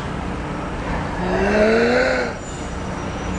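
A young woman shouts loudly with excitement, close by.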